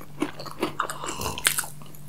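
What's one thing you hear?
A young man sips a drink.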